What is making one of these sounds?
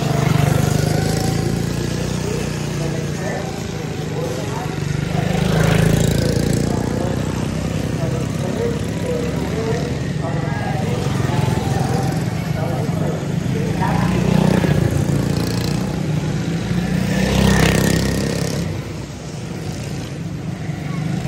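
Small kart engines buzz and whine, rising and falling.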